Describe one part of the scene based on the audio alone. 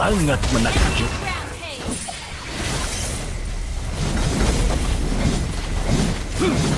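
Magic spells crackle and burst in a fast battle.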